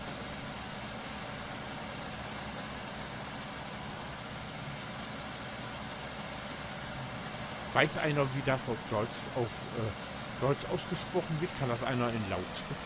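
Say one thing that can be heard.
A combine harvester engine hums steadily.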